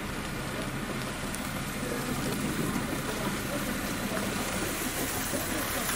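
A car drives slowly through snow.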